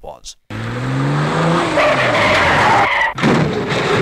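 Car tyres screech on a wet road.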